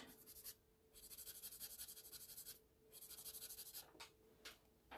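A pencil scratches softly across paper in quick shading strokes.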